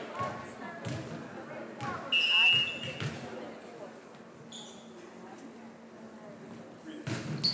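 A volleyball is struck with a sharp thump.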